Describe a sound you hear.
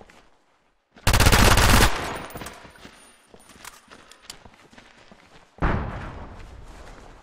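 Bursts of rapid gunfire ring out loudly with echoing tails.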